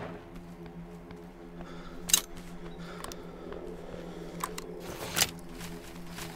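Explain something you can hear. A shotgun breaks open and shells are loaded with metallic clicks.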